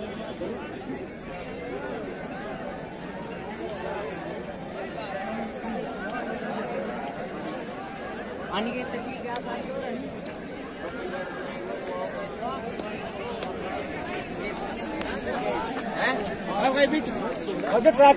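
A crowd of young men chatter and shout outdoors at a distance.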